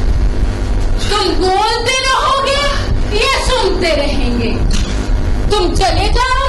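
A woman sings loudly with a wavering voice.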